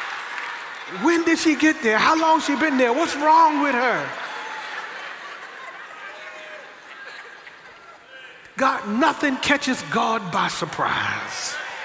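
An elderly man preaches with animation through a microphone in a large echoing hall.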